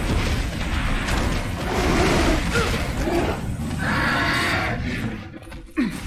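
A gun fires rapid loud shots.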